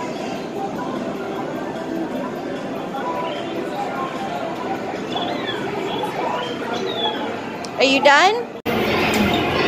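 A coin-operated kiddie ride hums and plays a jingle.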